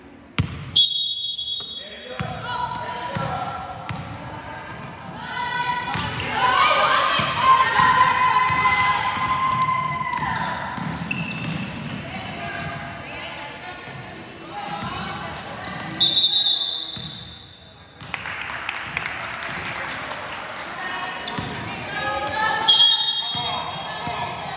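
A referee's whistle blows sharply in an echoing gym.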